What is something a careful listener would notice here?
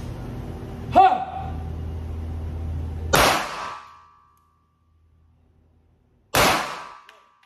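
Pistol shots bang sharply and echo indoors.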